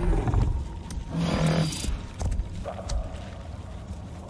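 A creature snarls and strikes in a short fight.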